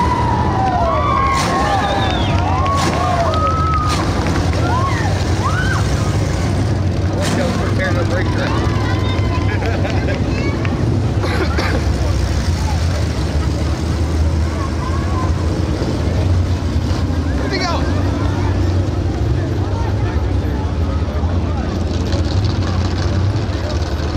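A race car engine rumbles loudly nearby as the car rolls slowly.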